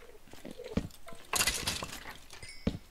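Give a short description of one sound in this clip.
A sword strikes a rattling skeleton with sharp hits.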